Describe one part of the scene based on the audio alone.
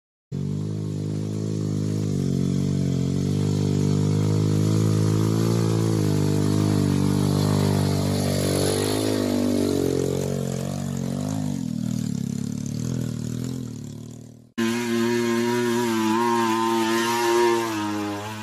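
A dirt bike engine drones and revs up close.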